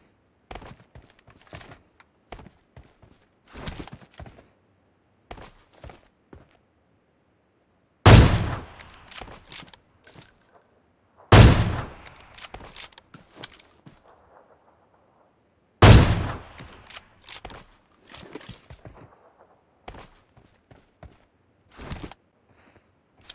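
Footsteps patter quickly over rough ground.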